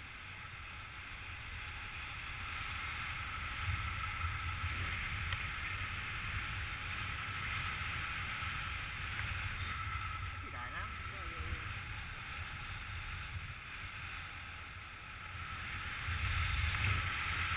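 Wind rushes and buffets steadily past a microphone high in open air.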